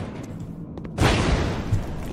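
A loud explosion bursts and roars.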